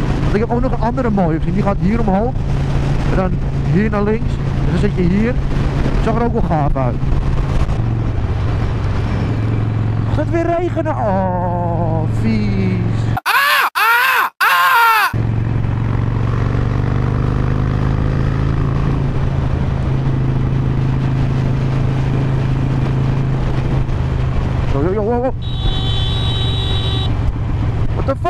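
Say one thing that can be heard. A motorcycle engine rumbles steadily at highway speed, its pitch rising and falling with the throttle.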